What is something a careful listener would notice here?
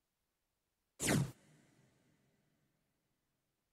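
A sharp game sound effect hits once and rings out briefly.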